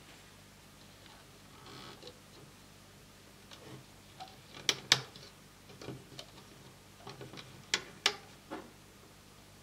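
Rubber bands click and snap softly against a plastic loom.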